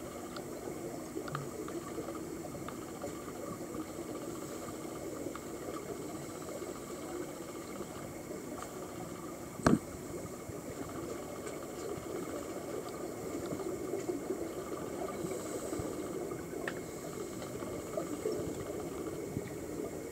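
Scuba divers' regulators bubble and gurgle steadily underwater.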